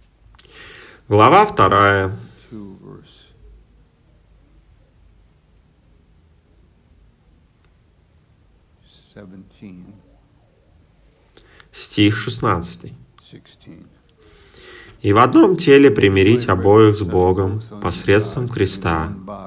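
A man speaks slowly and solemnly through a microphone in a large hall, with long pauses.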